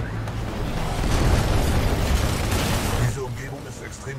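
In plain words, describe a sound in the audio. A giant robot moves with heavy mechanical whirring and thuds.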